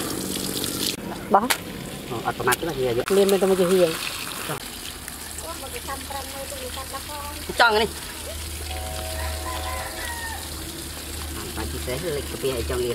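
Wet intestines squelch and slap as hands pull them apart on leaves.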